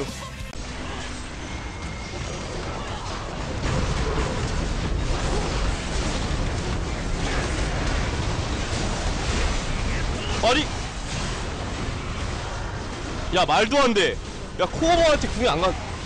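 Game combat effects clash and crackle loudly.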